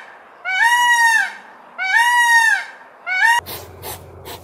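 A peacock gives loud wailing calls.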